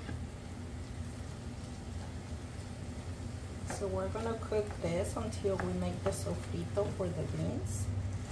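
A wooden spatula stirs and scrapes food in a pan.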